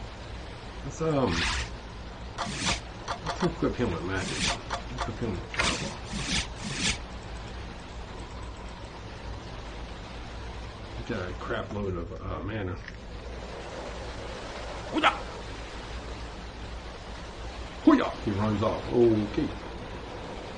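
A man talks casually into a microphone, close by.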